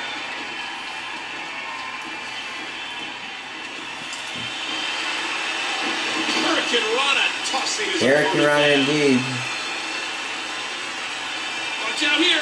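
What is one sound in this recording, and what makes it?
A crowd cheers and roars steadily, heard through a television's speakers.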